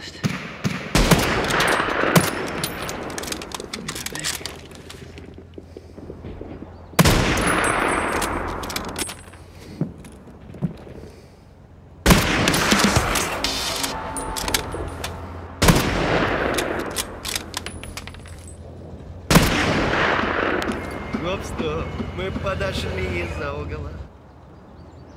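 Rifle shots boom loudly, each followed by a long rolling echo.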